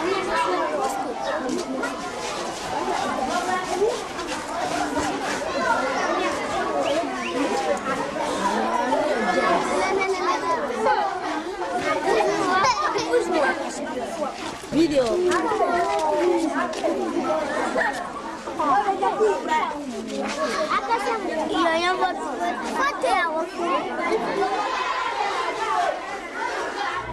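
A crowd of young children chatter and shout excitedly close by.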